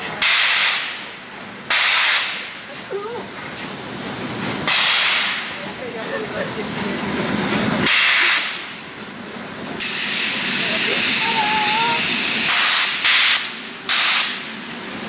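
Steam hisses steadily from a locomotive.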